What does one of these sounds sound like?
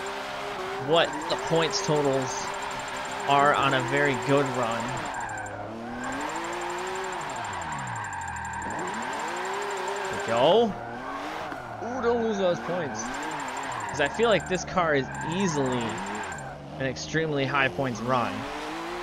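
Tyres squeal in bursts as a car slides through turns.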